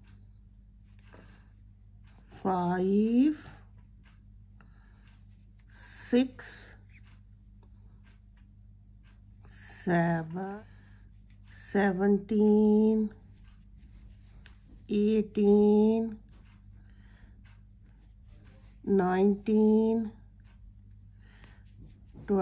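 Knitting needles click and scrape softly against yarn.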